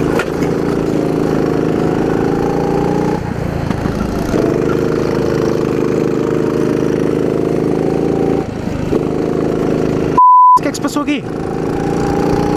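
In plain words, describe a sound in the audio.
A small kart engine buzzes loudly close by, dropping and rising in pitch through the corners.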